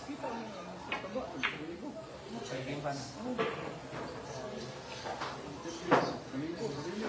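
Pool balls click together sharply.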